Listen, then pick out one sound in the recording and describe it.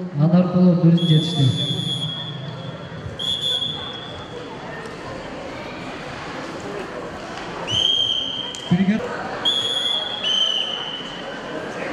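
A referee blows short, sharp whistle blasts.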